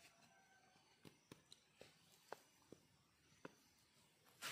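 Wooden sticks tap and click together.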